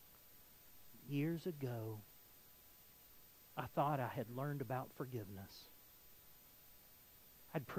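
A middle-aged man speaks with animation through a microphone in a large room, pausing between phrases.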